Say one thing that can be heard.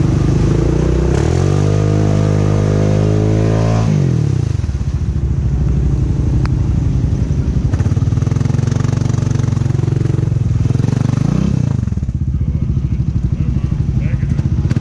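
Tyres churn and splash through thick mud.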